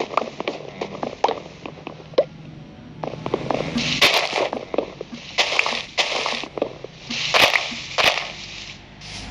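Leaves rustle and crunch as blocks are broken in quick bursts.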